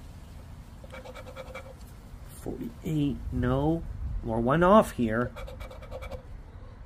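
A coin scratches rapidly at a card close by.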